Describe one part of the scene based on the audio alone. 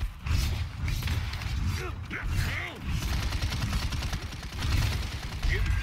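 Fiery explosions crackle and roar.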